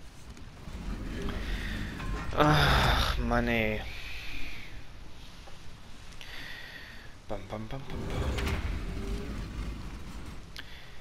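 A heavy stone mechanism grinds and rumbles as it turns in a large echoing hall.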